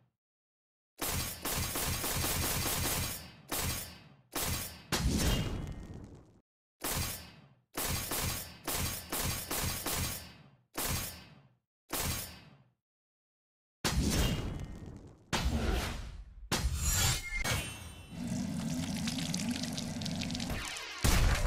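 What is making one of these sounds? Game menu sounds whoosh and chime as pages turn.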